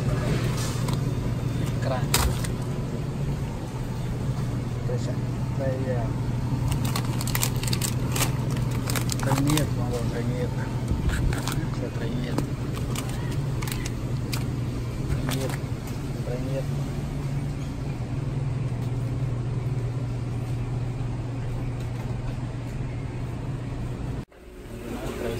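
A freezer hums steadily.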